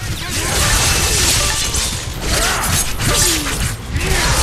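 Heavy blows thud.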